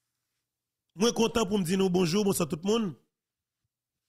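A man speaks in a shaky, tearful voice close to a microphone.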